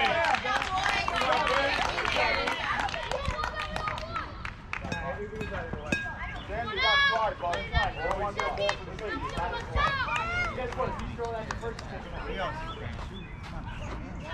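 Young girls shout and cheer outdoors.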